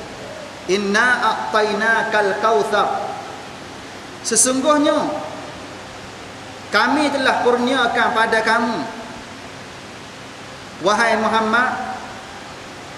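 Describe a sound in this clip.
A man speaks calmly and closely into a microphone, in short phrases with pauses.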